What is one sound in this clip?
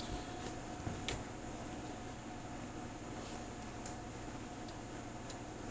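Small clicks and knocks come as a man handles a radio set.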